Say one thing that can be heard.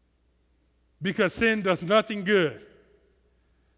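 A man speaks with feeling through a headset microphone.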